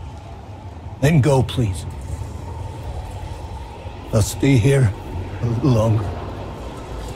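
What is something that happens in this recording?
An elderly man answers in a low, rough voice.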